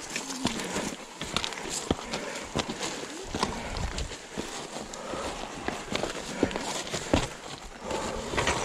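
A bicycle rattles and clanks over bumps.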